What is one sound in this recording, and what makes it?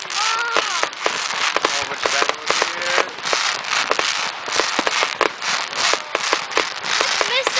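Fireworks burst with sharp bangs.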